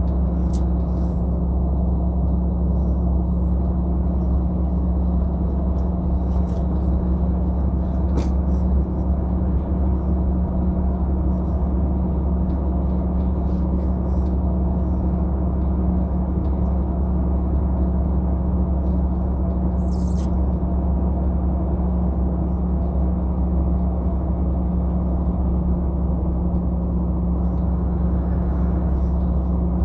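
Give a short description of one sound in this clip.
Tyres roll steadily on smooth pavement.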